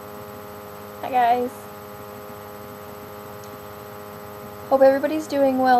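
A young woman speaks briefly, close to a microphone.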